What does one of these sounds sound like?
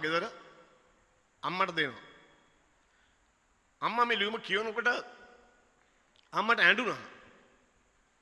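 A middle-aged man speaks with emphasis into a microphone, in short phrases with pauses, his voice echoing in a large hall.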